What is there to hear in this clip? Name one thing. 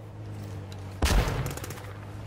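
A single loud gunshot cracks.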